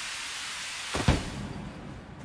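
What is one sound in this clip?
Something lands on the ground with a heavy thud.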